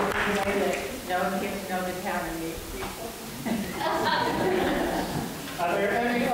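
An elderly woman speaks loudly in a large echoing hall.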